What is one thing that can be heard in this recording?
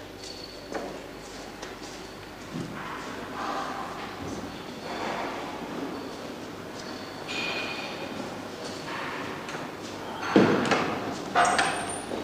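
A metal trolley rattles as it is pushed.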